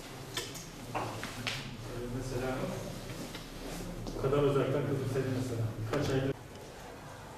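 A man speaks to a room full of children.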